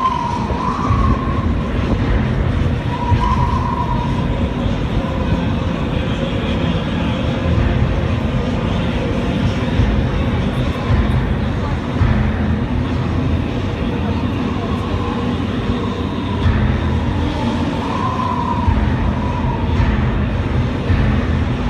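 Water splashes and sprays steadily.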